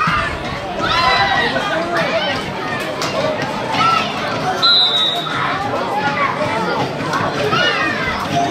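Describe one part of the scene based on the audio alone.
Children shout and call out excitedly outdoors.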